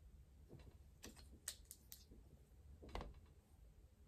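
Plastic toy parts click and rattle as they are handled.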